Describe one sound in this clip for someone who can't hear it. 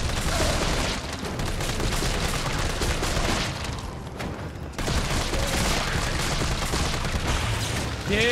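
Gunshots fire rapidly in quick bursts.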